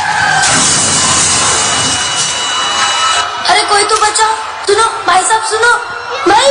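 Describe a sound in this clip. Music plays loudly over loudspeakers in a large hall.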